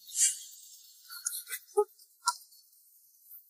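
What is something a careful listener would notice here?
A young woman speaks briefly in surprise.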